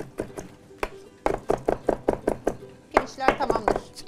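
A knife chops herbs rapidly on a cutting board.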